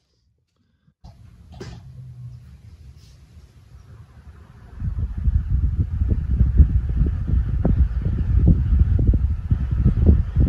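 An electric fan starts up and whirs.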